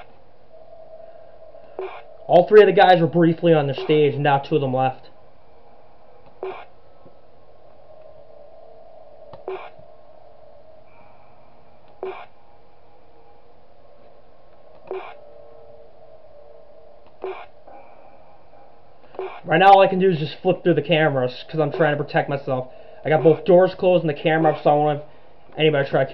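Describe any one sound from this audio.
Soft static hums steadily.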